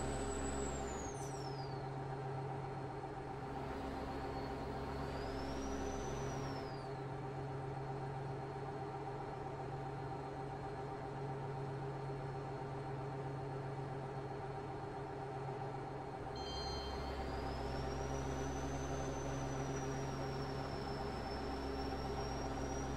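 A truck engine drones steadily as it drives along a highway.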